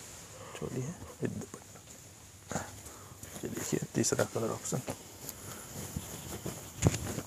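Cloth rustles as it is unfolded and laid down.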